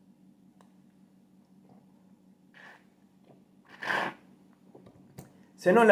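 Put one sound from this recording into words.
A man sips loudly through a metal straw.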